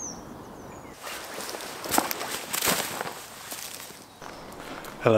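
A backpack rustles and thumps as it is handled.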